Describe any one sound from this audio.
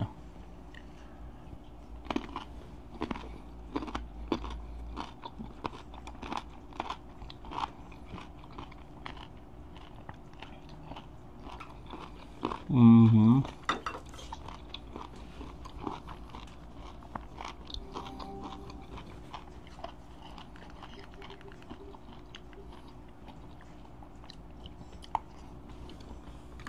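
Small taps and clicks come from handling food close by.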